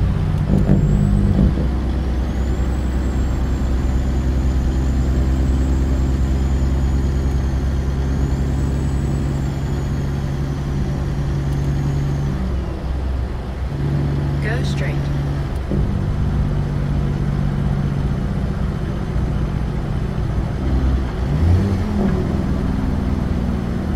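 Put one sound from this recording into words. Tyres roll over the road with a steady hum.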